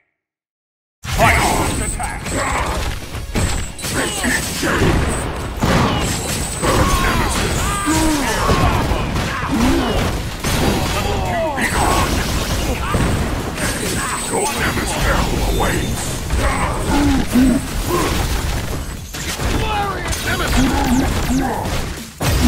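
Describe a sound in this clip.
Punches and kicks land with sharp thuds and smacks.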